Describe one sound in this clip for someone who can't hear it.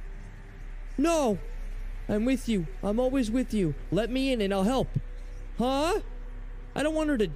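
A man speaks closely into a microphone with animation.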